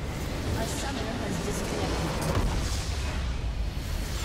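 A large structure explodes with a deep rumbling boom.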